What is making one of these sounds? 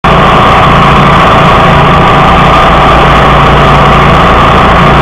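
A mower engine roars loudly and steadily close by.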